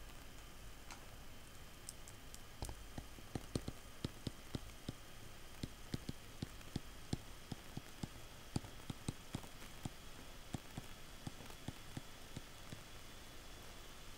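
A stylus taps and scratches on a tablet.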